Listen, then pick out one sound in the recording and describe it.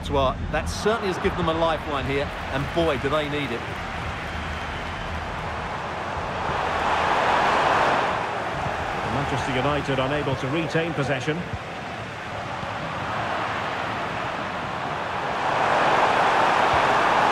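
A stadium crowd cheers steadily, swelling now and then.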